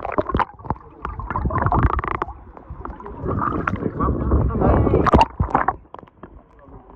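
Water churns and bubbles, heard muffled from underwater.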